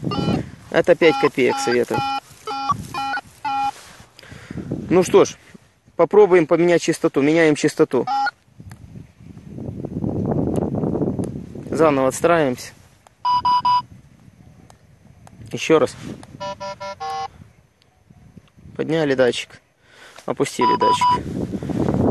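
A metal detector beeps in short electronic tones.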